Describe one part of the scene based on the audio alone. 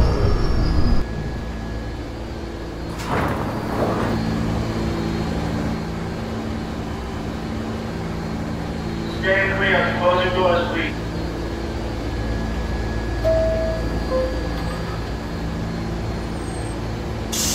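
A stopped subway train hums steadily.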